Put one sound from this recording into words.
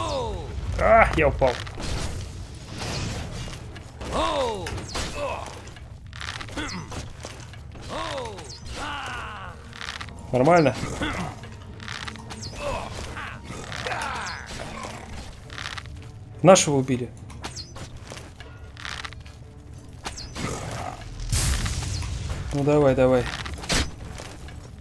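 Creatures groan and snarl.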